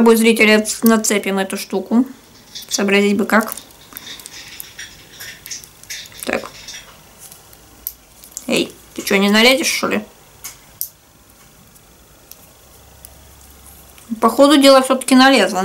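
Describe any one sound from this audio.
Small plastic parts click and rattle in a woman's hands.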